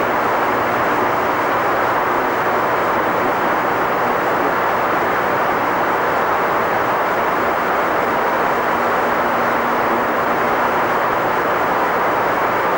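A spacecraft glides in low overhead with a steady rushing roar of air.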